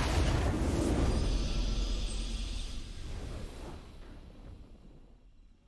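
A triumphant game fanfare swells and slowly fades away.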